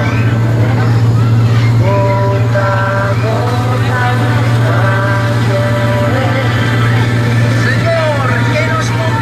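A young girl talks nearby.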